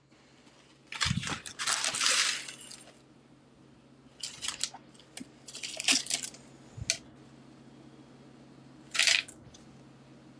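Paper and foil crinkle and rustle as a hand handles them.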